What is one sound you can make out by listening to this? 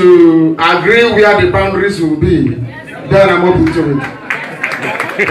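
A man speaks through a microphone to a room, echoing loudly.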